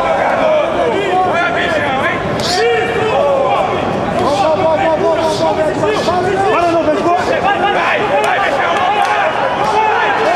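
Punches thud against a body on a padded floor.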